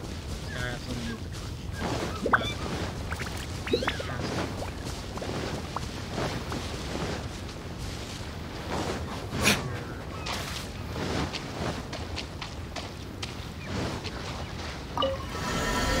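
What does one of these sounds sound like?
Footsteps run quickly over grass and sand.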